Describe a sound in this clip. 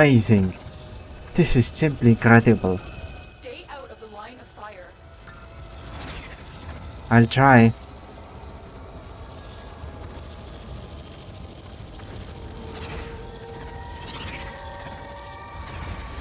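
A spaceship engine rumbles steadily as it flies.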